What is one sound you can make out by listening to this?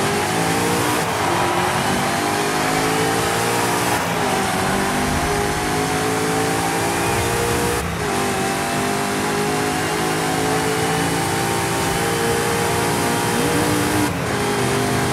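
Gear shifts cut the engine's roar briefly now and then.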